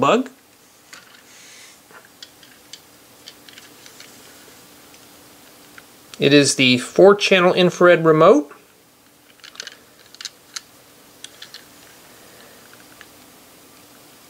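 Small plastic toy parts click and rattle as they are handled.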